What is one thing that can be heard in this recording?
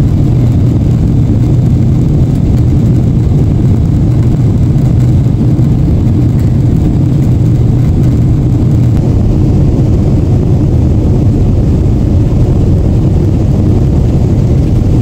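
A jet engine drones in a steady, deep roar from inside an aircraft cabin.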